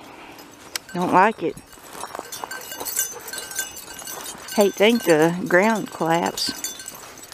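A dog whines and yelps close by in high, wavering cries.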